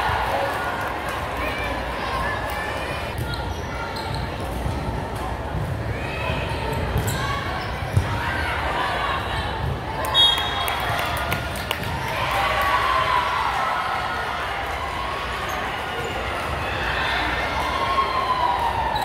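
Many young women chatter and call out in a large echoing hall.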